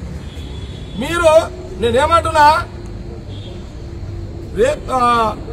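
An elderly man speaks loudly and with force into microphones outdoors.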